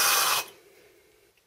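A power drill whirs briefly.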